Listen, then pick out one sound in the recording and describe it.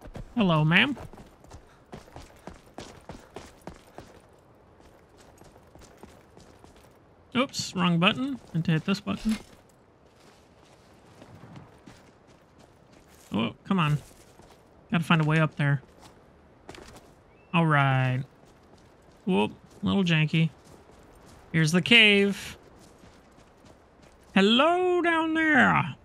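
Footsteps crunch on gravel and snow.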